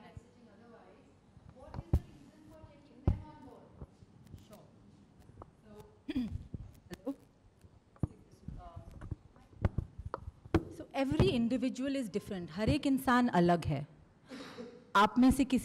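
A middle-aged woman speaks into a microphone, at first quietly and then louder.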